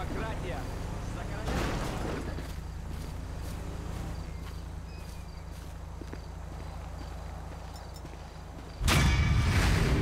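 Footsteps crunch on dry, gravelly ground.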